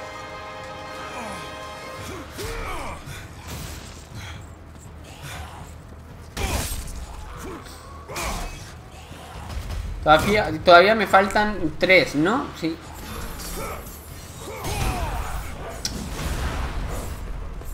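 Metal blades slash and strike flesh in quick blows.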